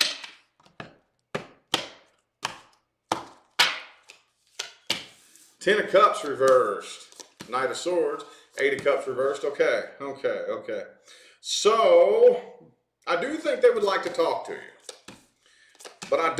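Cards are laid down on a table with soft taps.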